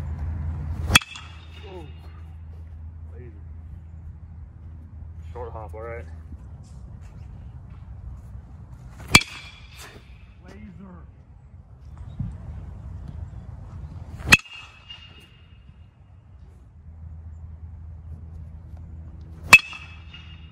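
A metal bat strikes a baseball with a sharp ping.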